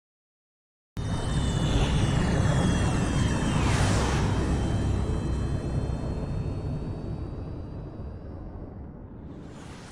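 A spaceship engine roars and slowly fades.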